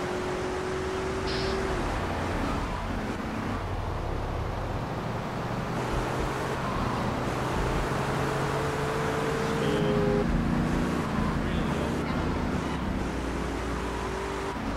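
A car engine hums steadily as a car drives along a street.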